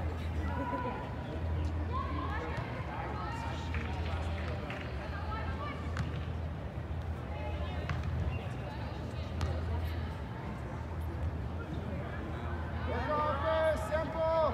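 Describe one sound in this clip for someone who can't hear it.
Young women shout and call out across a large echoing hall.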